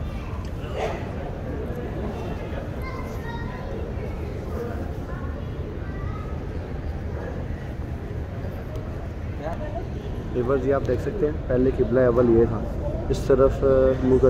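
A crowd of people murmurs and talks in a large echoing hall.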